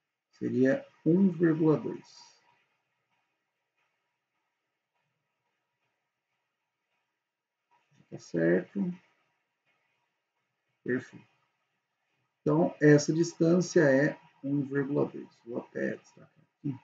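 A young man speaks calmly into a close microphone, with pauses.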